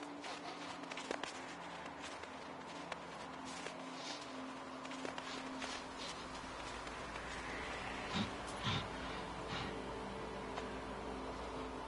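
Footsteps crunch over snowy ground.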